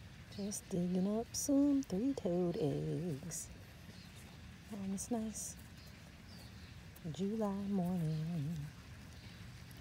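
Fingers dig and scrape in loose soil.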